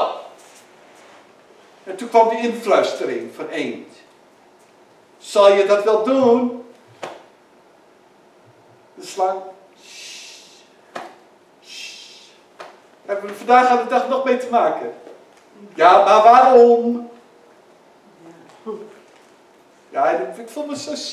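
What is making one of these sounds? A man speaks with animation through a microphone in a large echoing hall, with pauses between phrases.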